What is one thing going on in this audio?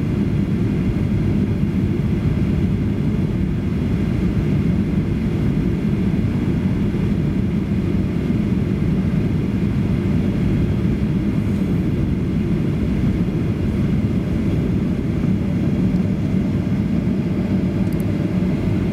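Jet engines roar steadily inside an aircraft cabin.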